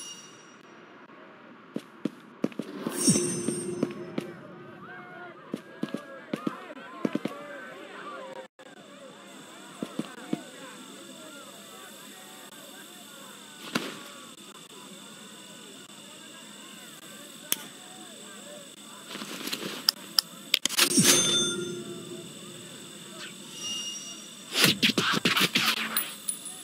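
A short game chime rings as a reward pops up.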